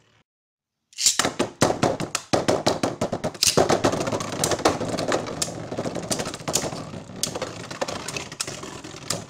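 Spinning tops whir and clatter against each other in a plastic arena.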